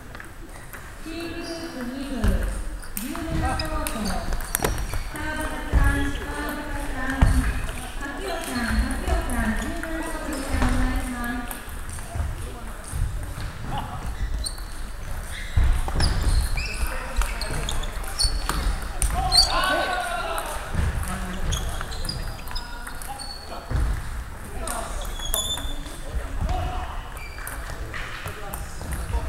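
A table tennis ball clicks against paddles and the table.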